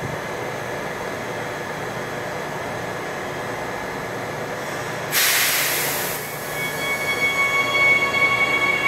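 A train rumbles slowly along the platform under an echoing roof.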